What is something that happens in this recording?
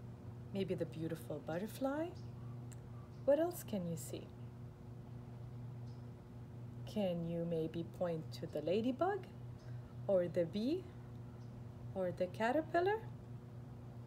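A woman reads aloud calmly and expressively, close by.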